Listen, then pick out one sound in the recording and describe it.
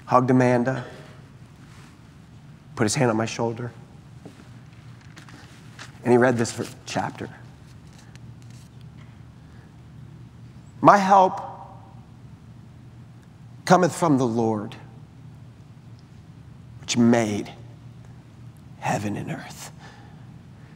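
A man speaks calmly into a microphone in short phrases with long pauses, in a large echoing hall.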